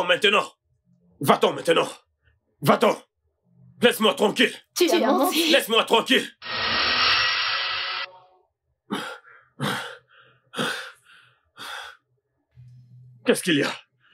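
A man speaks loudly and with animation nearby.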